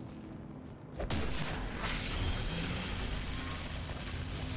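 Electricity crackles and buzzes steadily.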